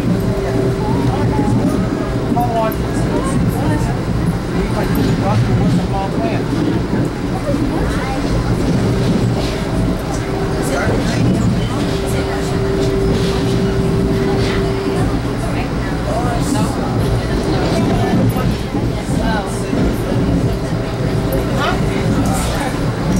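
Steel wheels squeal on the rails now and then.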